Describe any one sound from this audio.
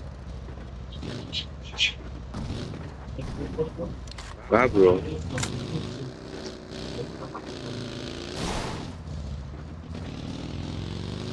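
A small vehicle engine idles and then revs as it drives off.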